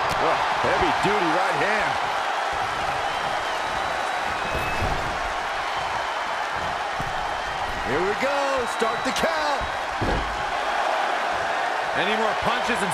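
A large arena crowd cheers and roars.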